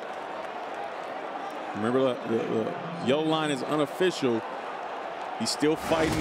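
A stadium crowd murmurs and cheers in a large open space.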